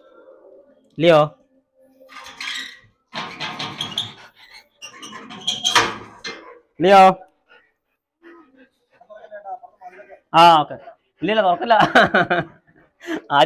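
A dog barks loudly nearby.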